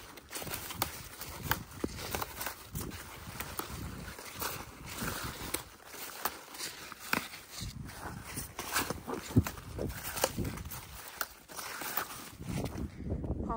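Leaves rustle and crackle as a gloved hand pushes through a plant.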